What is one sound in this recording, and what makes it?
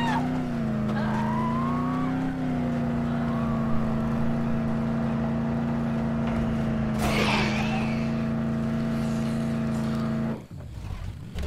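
A car engine hums steadily, then cuts off.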